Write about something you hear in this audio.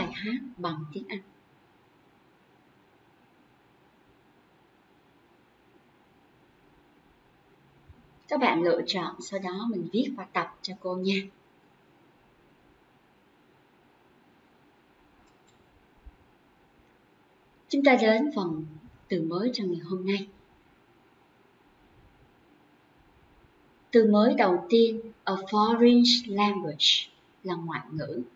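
A young woman speaks calmly and clearly into a close microphone, with pauses between phrases.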